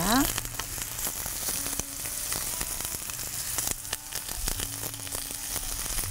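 Food slices are set down on a metal grill pan with soft taps.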